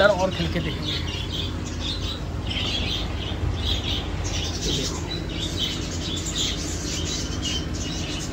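Water bubbles and splashes in a tank.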